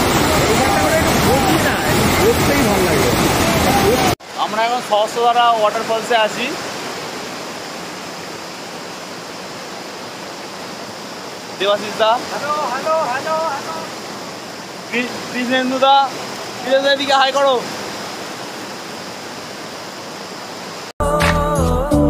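A river rushes loudly over rocks.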